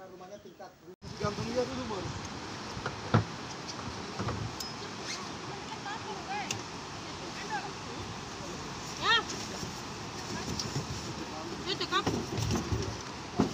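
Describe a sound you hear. Several men call out to one another outdoors.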